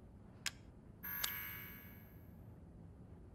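A metallic shimmer rings out and slowly fades.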